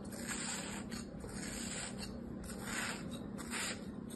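A knife scrapes softly through sand.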